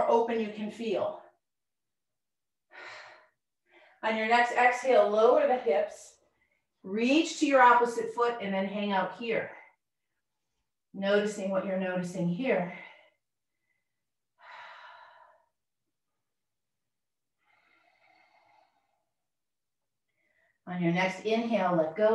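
A woman speaks calmly, giving instructions through a microphone, with pauses between phrases.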